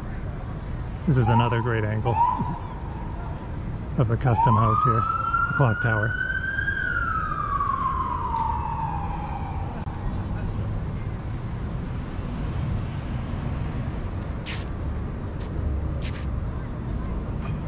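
A low, steady city hum fills the open air.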